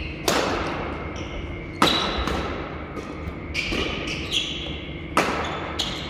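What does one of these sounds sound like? Badminton rackets strike a shuttlecock with sharp pops that echo in a large hall.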